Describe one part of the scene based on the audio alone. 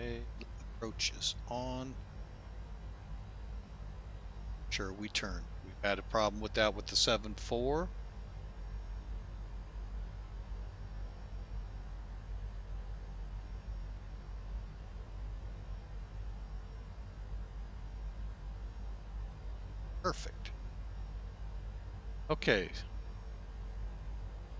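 A jet engine drones steadily.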